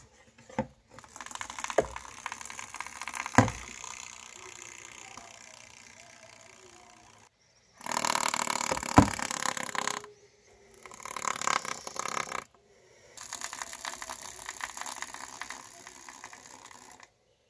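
A snake's tail buzzes against a plastic container.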